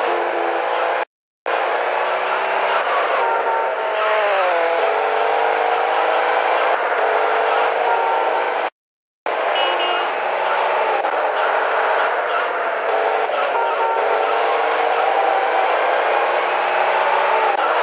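A car engine roars steadily as a car speeds along.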